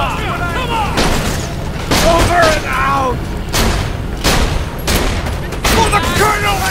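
A rifle fires in loud, sharp bursts.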